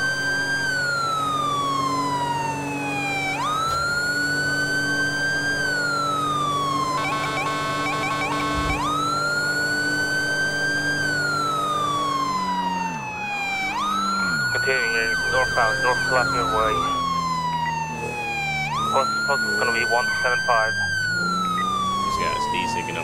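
A police siren wails loudly, rising and falling in long slow sweeps.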